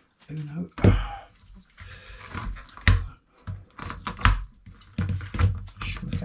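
Card packaging rustles and crackles.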